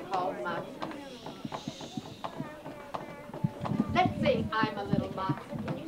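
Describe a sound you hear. Young children chatter and call out excitedly close by.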